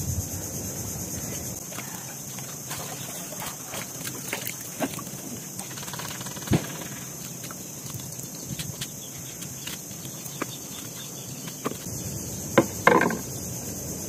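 A knife clicks and scrapes against clam shells.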